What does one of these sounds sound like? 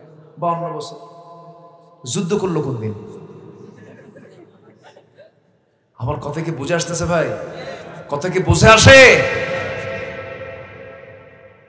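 A man preaches with passion into a microphone, his voice ringing through loudspeakers with a strong echo.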